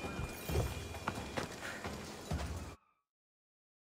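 Footsteps crunch quickly on a dirt path.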